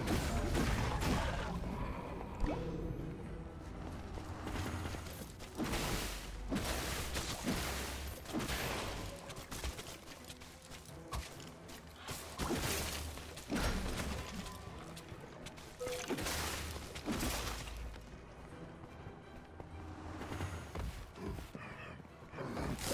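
Game music plays with a deep, rolling beat.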